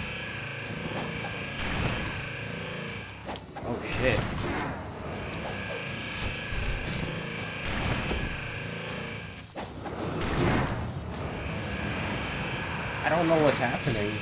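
Crackling energy blasts roar and whoosh in a video game.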